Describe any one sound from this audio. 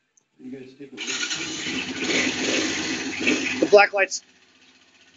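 A single-cylinder four-stroke three-wheeler engine revs.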